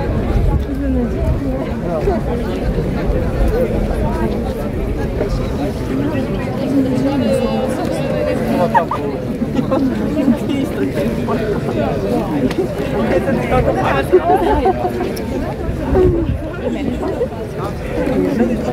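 A crowd of young people chatters nearby outdoors.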